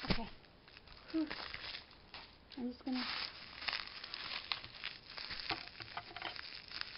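Bubbles in plastic wrap pop with sharp little snaps.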